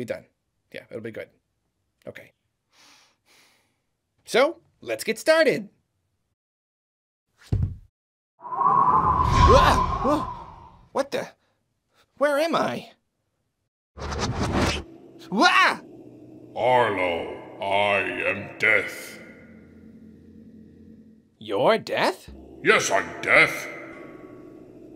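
A man talks in a high, comical puppet voice with animation, close to the microphone.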